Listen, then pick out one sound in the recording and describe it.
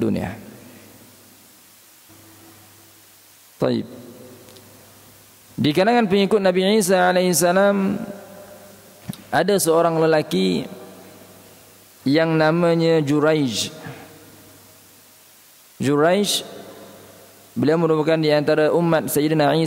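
A young man chants melodically into a microphone, echoing in a large hall, in phrases broken by pauses.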